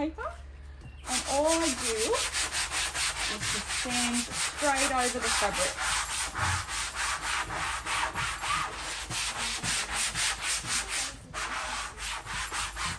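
A brush scrubs fabric rapidly.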